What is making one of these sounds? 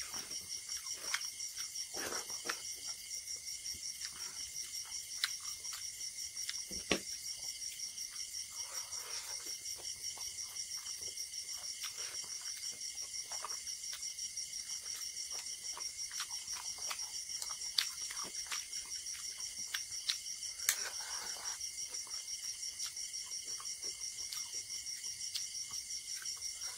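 A man chews and smacks his lips loudly close to a microphone.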